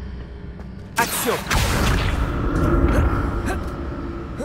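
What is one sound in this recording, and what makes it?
A magic spell bursts with a loud rushing whoosh.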